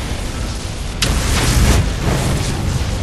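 A heavy stone block crashes down with a booming impact.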